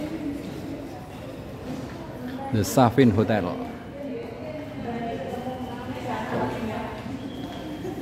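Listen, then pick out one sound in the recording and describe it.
A woman speaks calmly nearby in an echoing hall.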